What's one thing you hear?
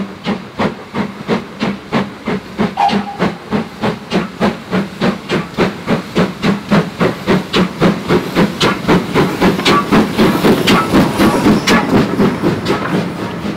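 A steam locomotive chuffs rhythmically as it approaches and passes close by.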